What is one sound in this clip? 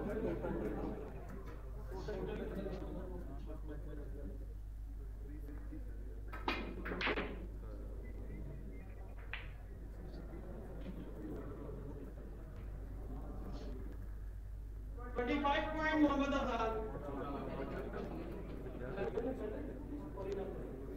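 A crowd of spectators murmurs nearby.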